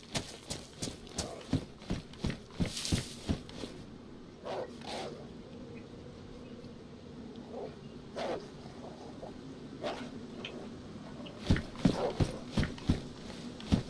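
Footsteps clatter on wooden stairs.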